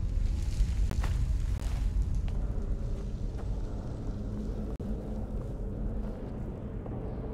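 Footsteps scrape on a stone floor.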